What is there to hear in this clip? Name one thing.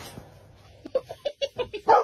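A dog splashes and slides through wet slush.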